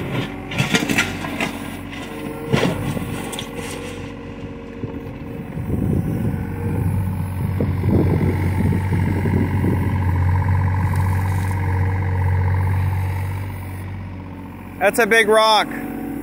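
A compact diesel excavator's engine runs under load.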